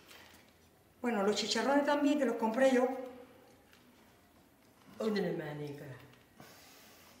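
An older woman speaks calmly close by.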